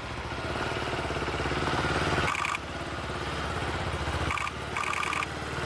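A motorcycle engine revs up as the bike pulls away.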